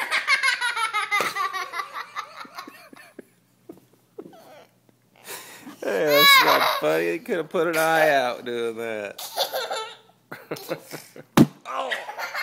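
A young child laughs and squeals loudly close by.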